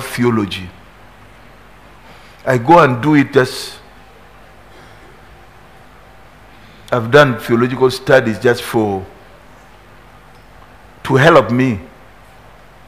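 A middle-aged man speaks slowly and forcefully through a headset microphone, with long pauses.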